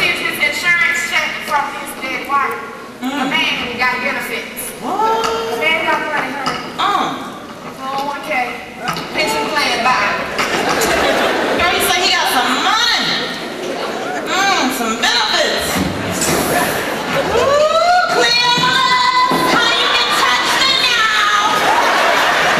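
A woman speaks loudly and with animation on a stage, heard from the audience in a large hall.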